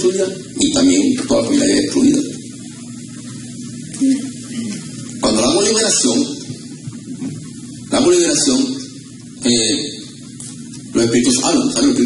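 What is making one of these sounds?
A man preaches with animation into a microphone over loudspeakers, in a large echoing room.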